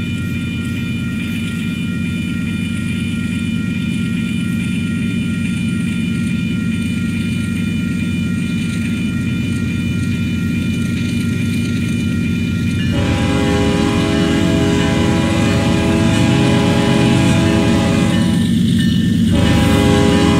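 A train rumbles closer along the tracks, growing louder.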